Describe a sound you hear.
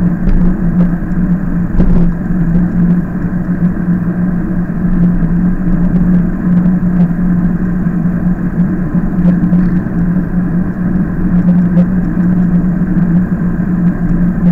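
An engine hums steadily as a vehicle drives along a road.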